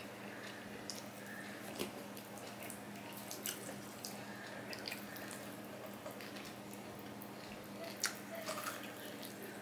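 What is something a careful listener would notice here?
A man chews food noisily, smacking his lips.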